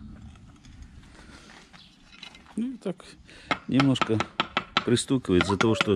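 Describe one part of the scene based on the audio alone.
A hammer handle taps a brick into mortar.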